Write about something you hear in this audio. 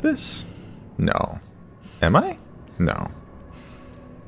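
A young man exclaims in alarm.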